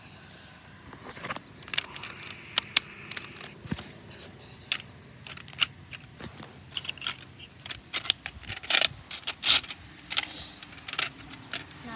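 Plastic toy dinosaurs knock and scrape against each other on pavement.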